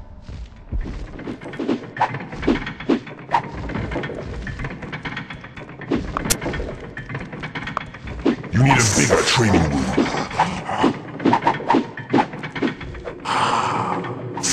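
Blows thud repeatedly against wooden training dummies.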